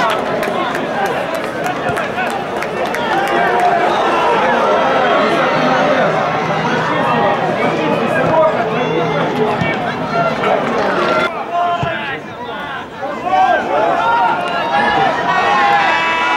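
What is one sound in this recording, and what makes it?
A crowd of spectators chants and cheers outdoors.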